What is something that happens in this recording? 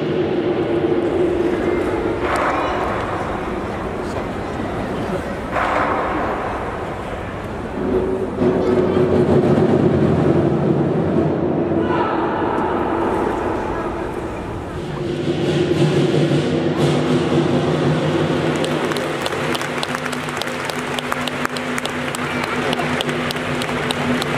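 A crowd of spectators murmurs and cheers in a large echoing hall.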